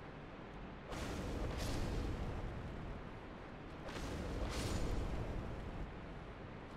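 A fireball bursts with a whoosh.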